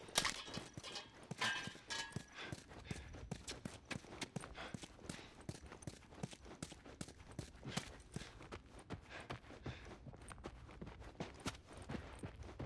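Footsteps crunch on a debris-strewn floor.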